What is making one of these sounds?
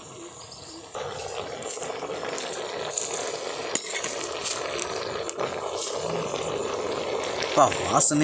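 A metal spoon scrapes and stirs food in a clay pot.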